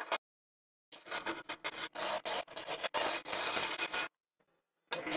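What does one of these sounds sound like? Sandpaper rasps against spinning wood.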